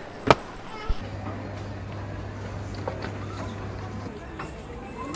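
A baggage conveyor belt hums steadily.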